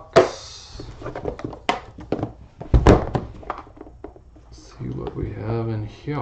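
Metal latches on a case snap open with sharp clicks.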